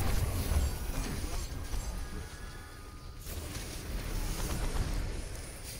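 Gunfire and game effects crackle and boom in quick bursts.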